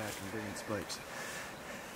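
A young man speaks quietly and wryly up close.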